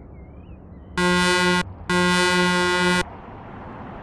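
A truck horn blares loudly twice.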